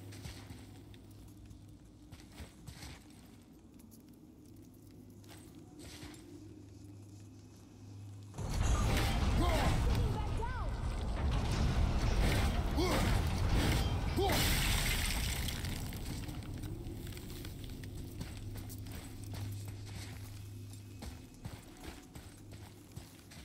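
Heavy footsteps crunch on rough ground.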